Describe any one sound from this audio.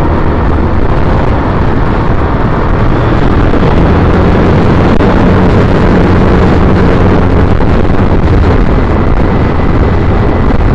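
Wind buffets loudly against the microphone of a moving vehicle.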